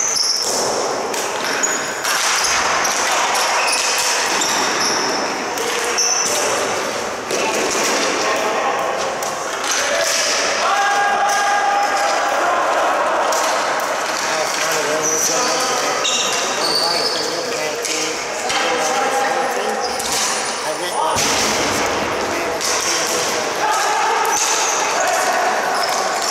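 Young players shout to each other across the arena.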